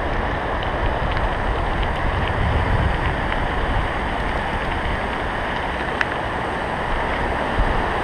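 A river rushes over rocks nearby.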